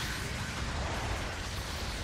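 A giant robot's thrusters roar as it boosts.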